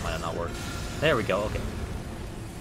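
A giant creature collapses with a heavy thud.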